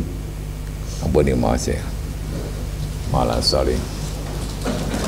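An elderly man speaks slowly through a microphone in an echoing hall.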